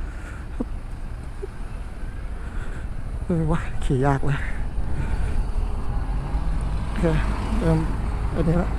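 Wind buffets the microphone as a motorcycle moves slowly through traffic.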